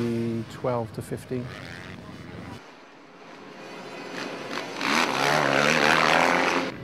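A motorcycle engine revs loudly in bursts.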